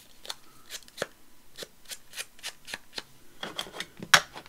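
A foam tool taps and dabs on paper.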